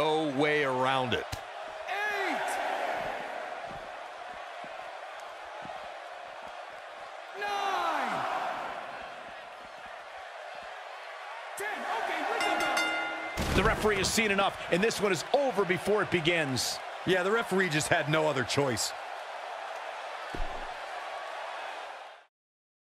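A large crowd cheers in an arena.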